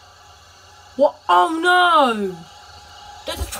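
A train horn blares loudly, then drops in pitch.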